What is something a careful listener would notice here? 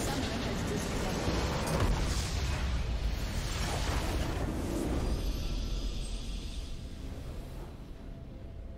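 A game's spell blasts and explosions crash loudly.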